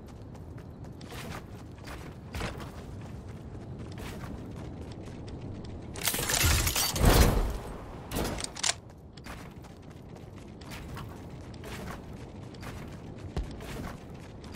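Building pieces snap into place with sharp clicks and thuds in a video game.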